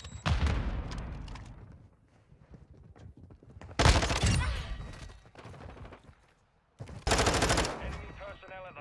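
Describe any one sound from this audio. Automatic gunfire rattles in loud, short bursts.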